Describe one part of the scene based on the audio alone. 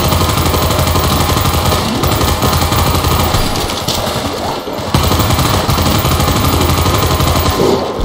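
A rifle fires in sharp bursts.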